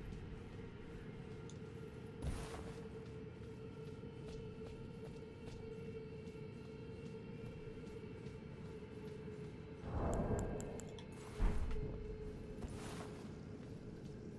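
Footsteps crunch on rough ground.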